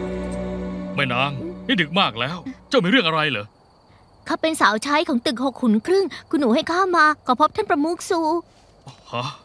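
A young woman speaks with animation nearby.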